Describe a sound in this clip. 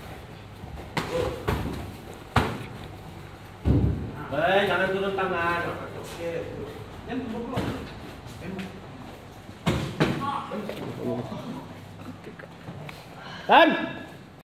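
Gloved punches and kicks thud sharply against padded mitts.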